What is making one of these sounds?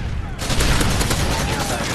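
An assault rifle fires rapid shots in a video game.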